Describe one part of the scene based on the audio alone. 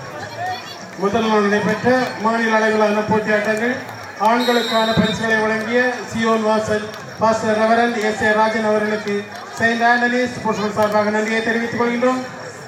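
A young woman chants the same word rapidly and repeatedly.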